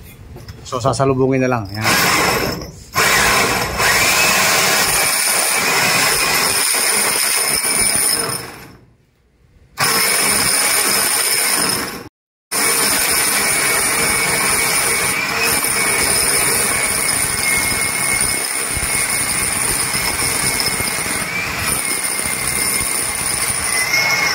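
A power drill whines loudly as a core bit grinds into concrete.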